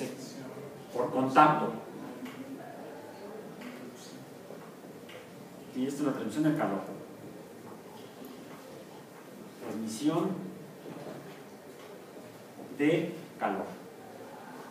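A young man speaks in short bursts in a room.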